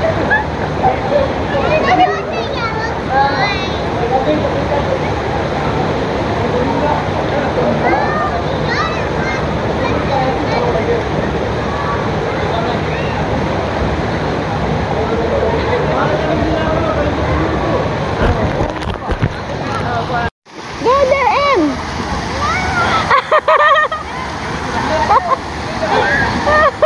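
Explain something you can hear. Children shout and call out excitedly in a noisy crowd.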